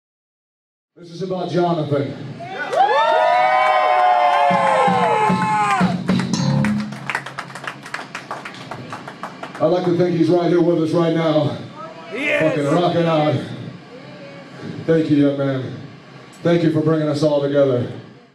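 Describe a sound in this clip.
Drums pound in a live band.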